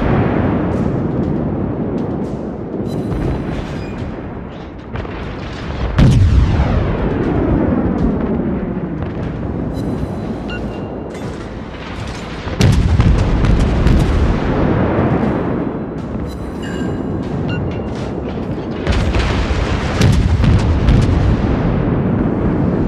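Shells explode with deep rumbling bangs.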